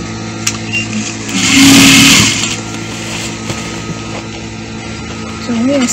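A sewing machine runs and stitches steadily.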